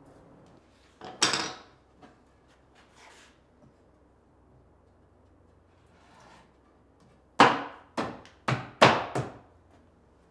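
A wooden board knocks and scrapes against a workbench.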